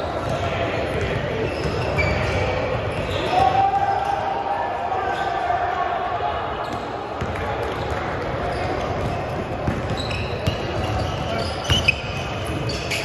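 Sneakers squeak on a hardwood court in a large echoing hall.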